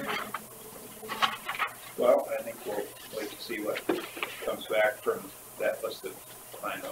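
A man speaks calmly in a room, heard through a room microphone.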